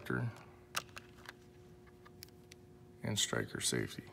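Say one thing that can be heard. A plastic tray crackles as it is handled.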